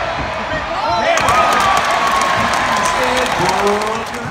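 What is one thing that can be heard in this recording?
A stadium crowd erupts in a loud cheer.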